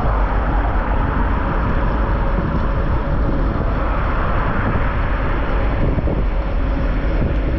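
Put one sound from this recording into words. Cars pass close by on the road.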